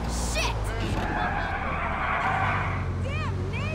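Car tyres screech as the car slides sideways.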